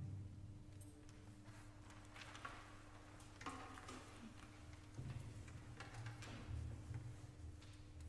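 An audience rustles and shifts in their seats.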